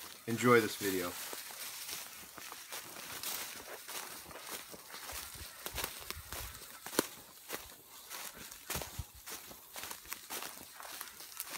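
An animal's paws rustle through dry leaves on the ground.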